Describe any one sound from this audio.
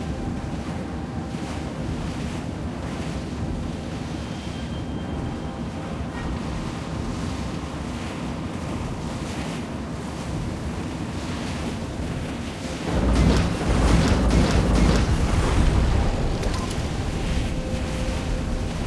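A submarine's engine rumbles low and steady.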